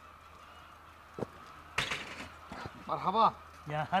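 A bicycle clatters as it is set on its stand.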